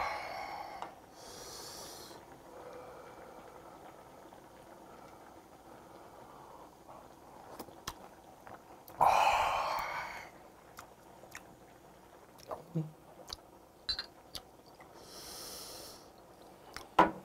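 A man exhales loudly in satisfaction.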